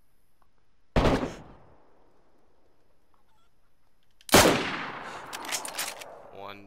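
A bolt-action rifle fires, echoing across open ground.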